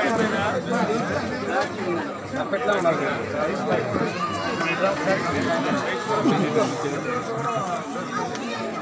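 Several men talk over one another close by.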